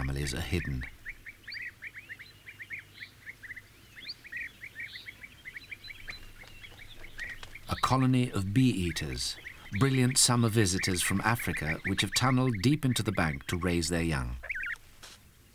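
Small birds call with rapid, chirping trills.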